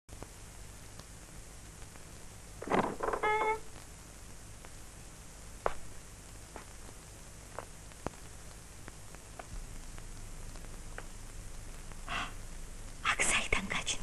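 An elderly man speaks in a low voice, close by.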